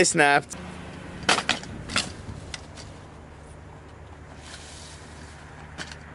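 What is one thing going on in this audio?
A wooden chair clatters on pavement.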